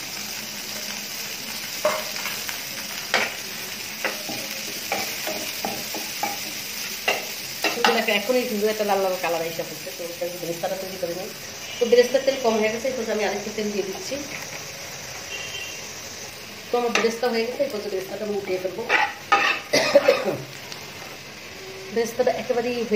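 Onions sizzle in hot oil in a pan.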